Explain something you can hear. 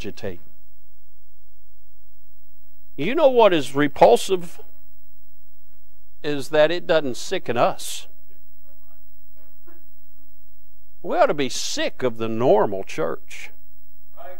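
A man speaks calmly through a microphone, with pauses between phrases.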